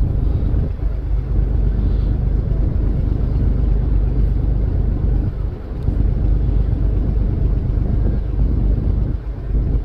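Water rushes along a ship's hull.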